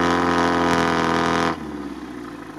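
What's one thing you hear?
A truck engine revs loudly.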